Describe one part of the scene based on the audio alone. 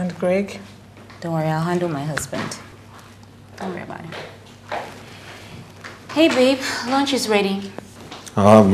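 A young woman speaks with distress, close by.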